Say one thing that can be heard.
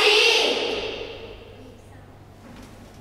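A children's choir sings a final note that rings out and fades in a reverberant hall.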